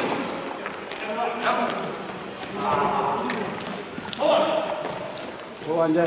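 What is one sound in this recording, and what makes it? Young players shout in a large echoing hall.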